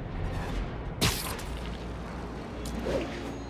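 Air whooshes past as a figure swings between buildings.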